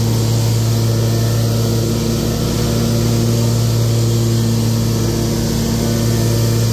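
Mower blades whir as they cut grass.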